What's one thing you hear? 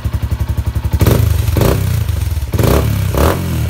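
A motorcycle engine revs up sharply a few times.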